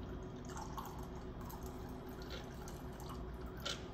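Liquid trickles into a glass.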